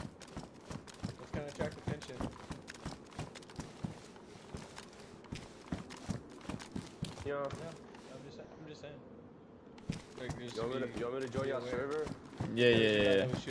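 Footsteps crunch quickly on hard ground.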